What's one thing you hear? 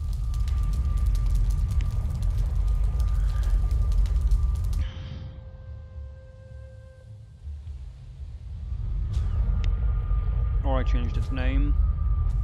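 A magic portal roars with a deep, steady rumble.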